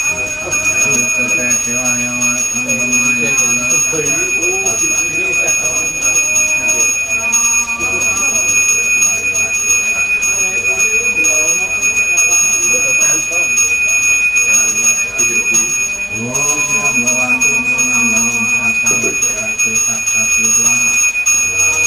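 A man chants in a steady, drawn-out voice nearby.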